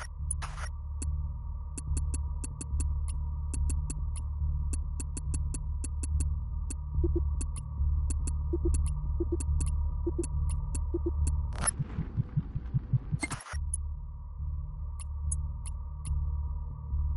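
Soft menu clicks tick one after another.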